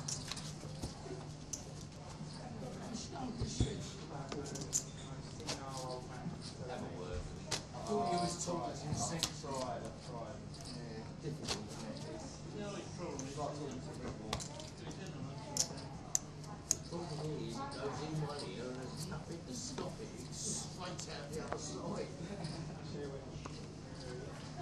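Poker chips click together in a player's fingers.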